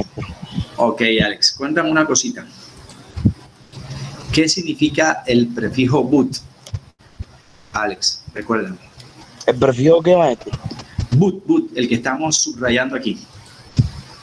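A man speaks calmly through an online call microphone.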